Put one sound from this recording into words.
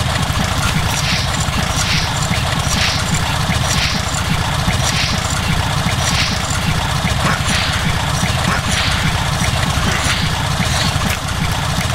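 A hand pump on a gun is worked with regular, clicking strokes.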